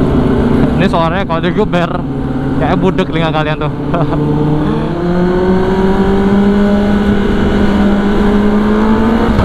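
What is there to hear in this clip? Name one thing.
A motorcycle engine hums and rises steadily in pitch as it speeds up.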